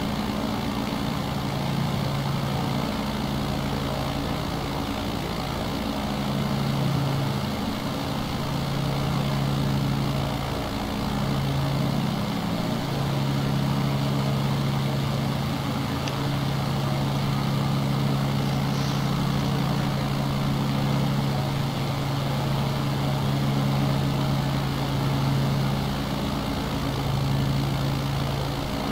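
A small propeller plane's engine drones steadily, wavering slightly in pitch.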